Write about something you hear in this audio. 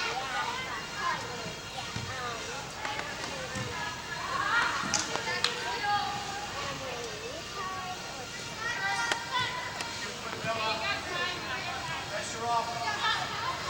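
Young women shout and call out across a large echoing hall.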